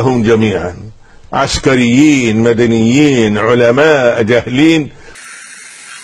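An elderly man speaks with animation, heard through a loudspeaker.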